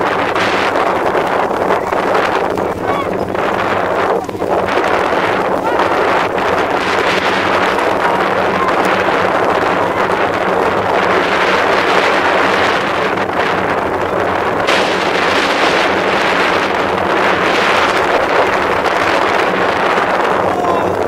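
Young children shout at a distance outdoors.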